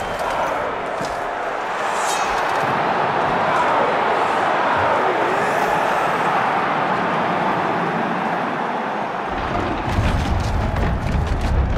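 A large crowd roars loudly in an open arena.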